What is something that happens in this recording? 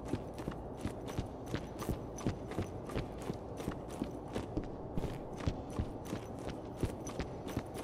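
Quick footsteps run across a metal floor.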